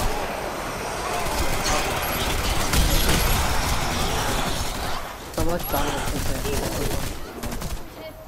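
Gunfire crackles in rapid bursts.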